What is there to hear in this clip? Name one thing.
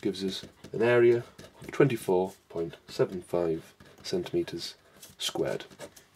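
A pen scratches on paper.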